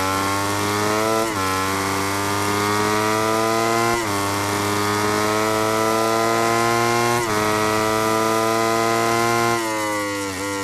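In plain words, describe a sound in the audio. A motorcycle engine screams at high revs, climbing through the gears.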